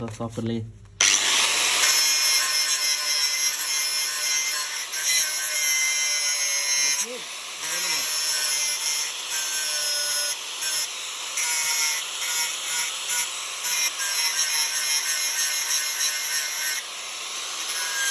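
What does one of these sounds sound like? An angle grinder whines loudly as it grinds metal, with a harsh shrill edge.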